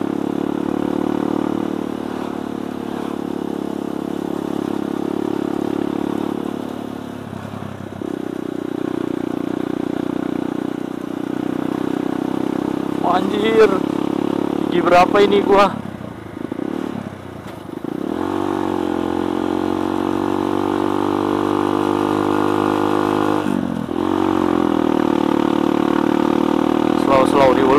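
A motorbike engine hums steadily up close, rising and falling in pitch as the rider speeds up and slows down.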